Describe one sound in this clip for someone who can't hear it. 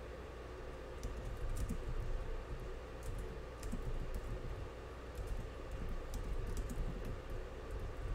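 Computer keyboard keys click in quick, uneven bursts of typing.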